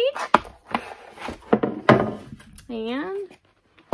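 A wooden tray knocks on a table.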